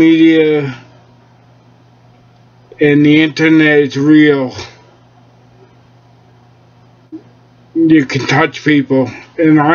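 A middle-aged man speaks calmly and close to a microphone, in short bursts with pauses.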